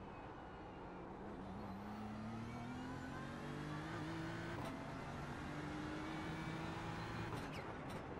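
A race car engine roars and revs higher through the gears.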